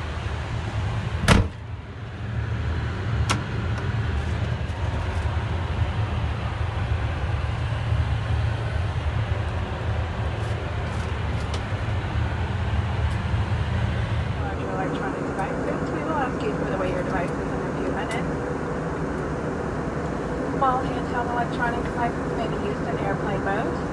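Aircraft engines drone steadily in a cabin.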